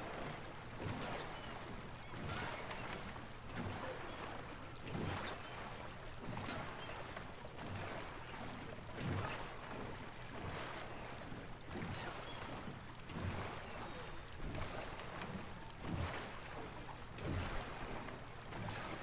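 Water laps and gurgles against a rowing boat.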